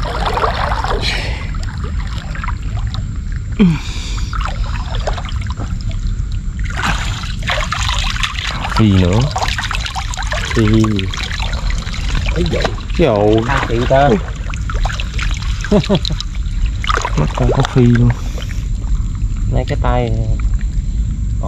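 Water sloshes steadily as someone wades through it.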